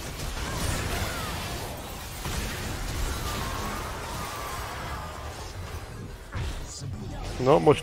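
Fantasy combat effects clash and whoosh.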